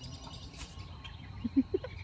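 A dog pants nearby.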